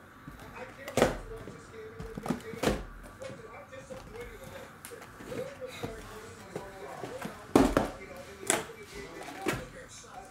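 Cardboard boxes knock and tap against a table.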